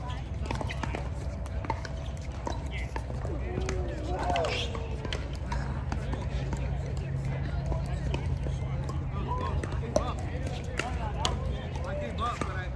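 Paddles strike a plastic ball with sharp hollow pops, back and forth.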